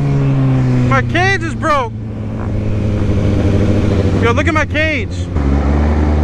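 Another motorcycle passes close by with a rising and falling whine.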